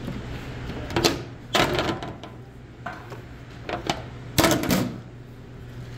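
A plastic lid clatters against a metal tray.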